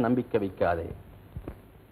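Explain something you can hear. A man speaks forcefully, briefly.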